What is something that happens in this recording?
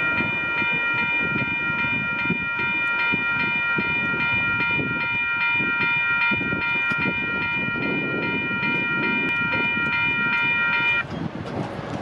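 A train's horn blares in a long steady chord.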